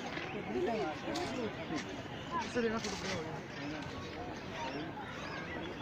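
A crowd of visitors chatters nearby outdoors.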